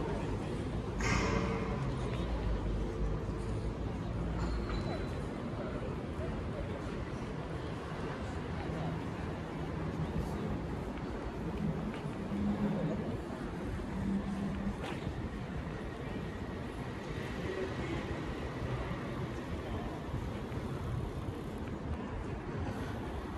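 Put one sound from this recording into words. Distant voices of passers-by murmur in an open square.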